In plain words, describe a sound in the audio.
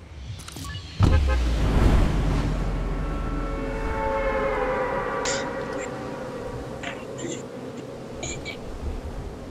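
Wind rushes loudly past a falling, gliding figure.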